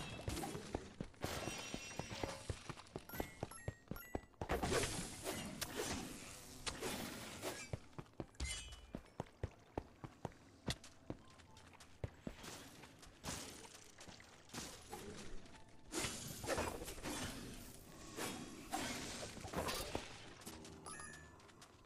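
Swords clash and strike in a video game fight.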